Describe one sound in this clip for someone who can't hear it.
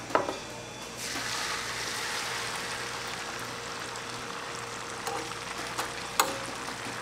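Egg mixture sizzles on a hot griddle.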